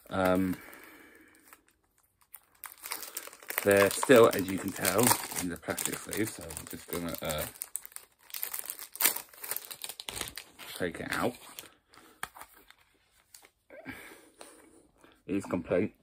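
A plastic disc case clicks and rattles in a man's hands.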